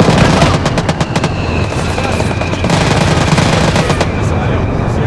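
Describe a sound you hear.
A jet roars overhead.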